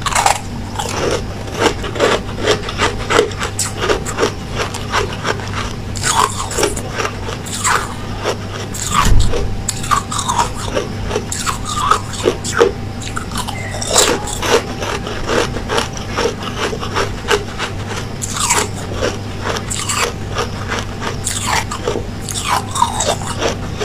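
A young woman chews with wet mouth sounds.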